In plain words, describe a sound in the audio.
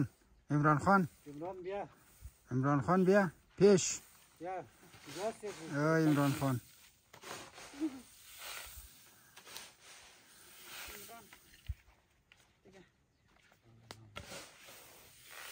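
A shovel scrapes and tosses grain.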